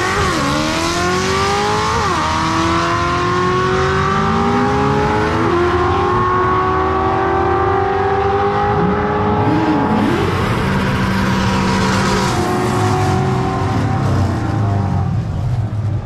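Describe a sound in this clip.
A race car engine roars loudly, shifting gears as it speeds away.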